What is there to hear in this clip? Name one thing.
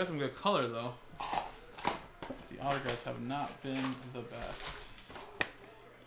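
Plastic wrap crinkles as a box is unwrapped.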